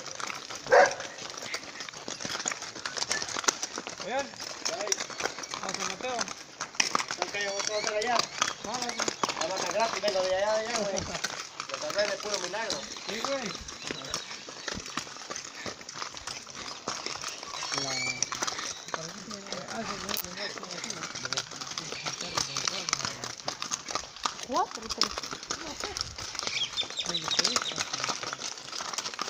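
A horse's hooves clop on a gravel road.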